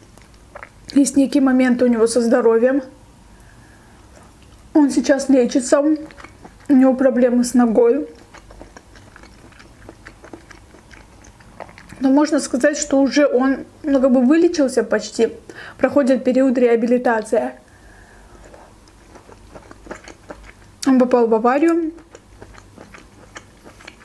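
A young woman chews food with soft, wet mouth sounds close to a microphone.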